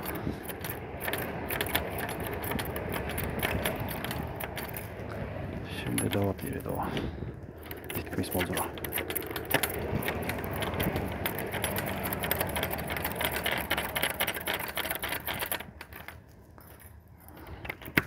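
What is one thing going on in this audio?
A metal door latch rattles and clicks as a hand works it.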